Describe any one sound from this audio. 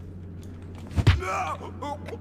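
A heavy blow lands with a dull thump.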